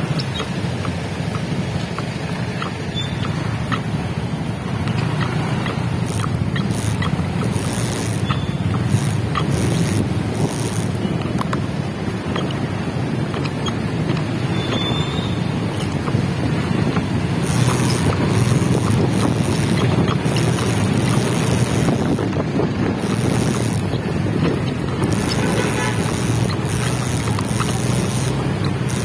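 Traffic hums and rumbles all around outdoors.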